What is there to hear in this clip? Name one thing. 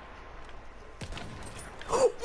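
A bolt-action rifle fires a single shot.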